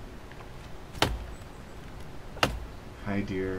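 A bowstring snaps sharply as an arrow is loosed.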